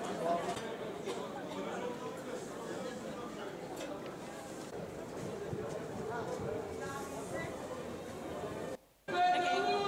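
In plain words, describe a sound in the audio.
A crowd murmurs along a busy street.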